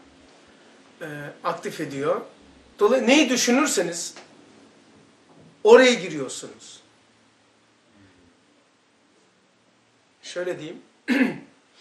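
An elderly man speaks with animation, close to a microphone, in short bursts with pauses.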